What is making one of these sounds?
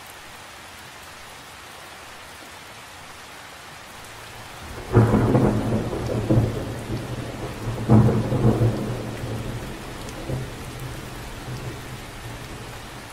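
Rain patters steadily on the surface of a lake.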